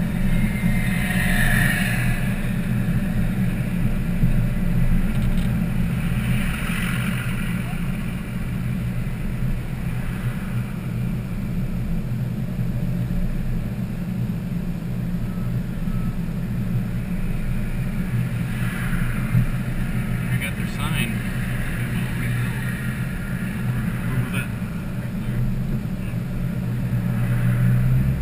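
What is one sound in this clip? Tyres roll along the road.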